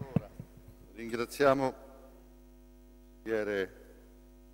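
A man speaks briefly into a microphone.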